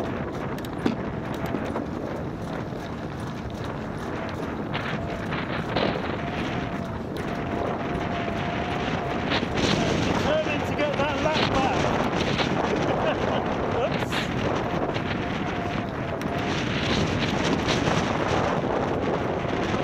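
Wind rushes past a faired recumbent trike at racing speed.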